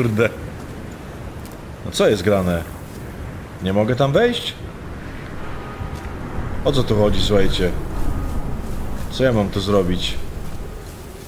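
An elderly man talks calmly, close to a microphone.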